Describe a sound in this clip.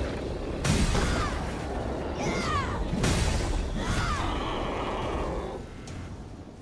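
Heavy sword blows clash and whoosh with loud impacts.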